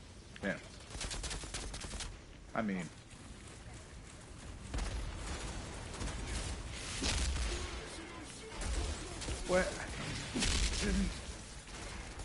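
Gunshots fire in bursts, with booming blasts.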